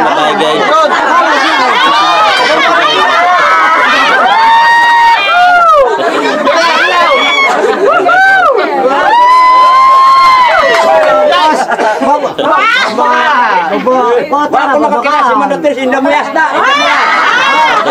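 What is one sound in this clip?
A group of men and women sing loudly together close by.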